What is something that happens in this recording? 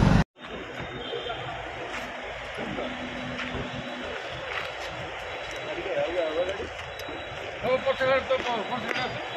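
Several men talk over one another nearby, outdoors.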